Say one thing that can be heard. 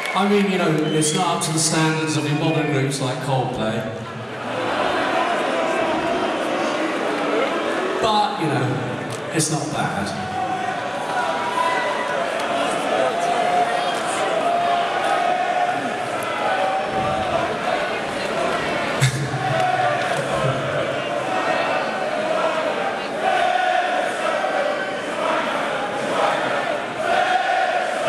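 A crowd cheers and shouts.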